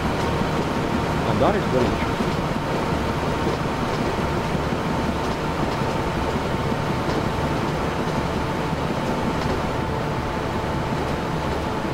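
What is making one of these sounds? An electric train hums steadily as it rolls along the tracks.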